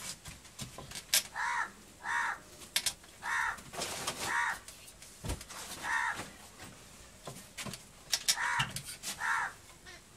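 Metal pots clink.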